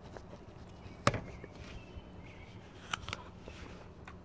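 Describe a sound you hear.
A man bites into a crisp apple with a loud crunch.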